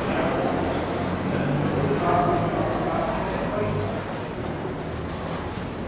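A crowd murmurs indoors.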